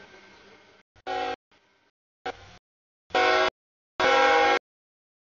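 A train horn blows in several loud blasts.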